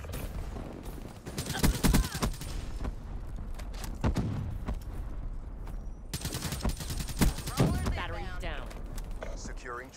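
A suppressed assault rifle fires in bursts in a video game.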